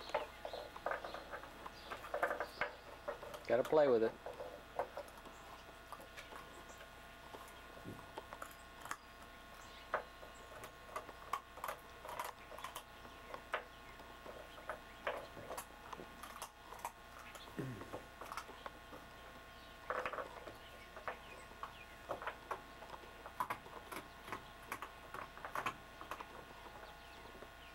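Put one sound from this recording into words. A dog chews and gnaws on a toy.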